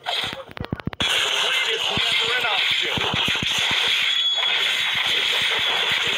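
Magical spell effects whoosh and crackle in a fast fight.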